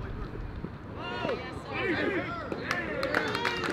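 Young men shout out across an open ball field.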